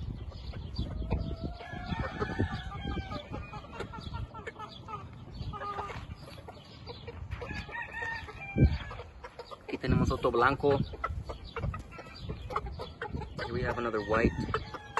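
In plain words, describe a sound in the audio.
A rooster clucks and crows nearby.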